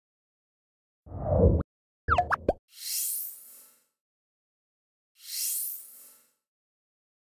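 A short jingle of tones and whooshes plays.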